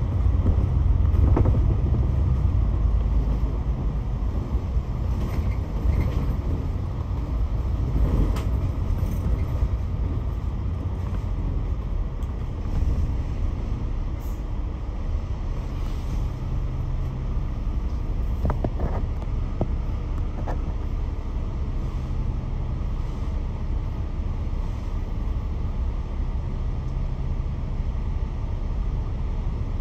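A bus engine rumbles low and steadily throughout.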